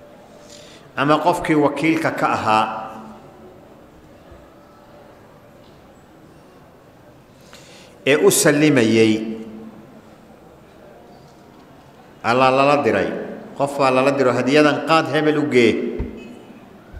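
A middle-aged man speaks slowly and calmly into a microphone, with long pauses.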